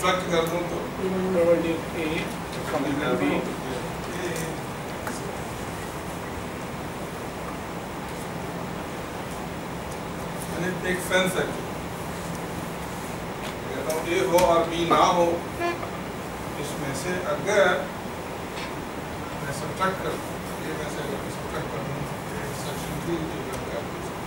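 A man lectures calmly, pausing often.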